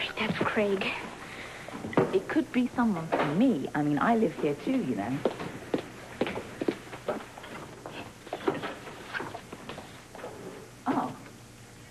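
Two women talk with each other.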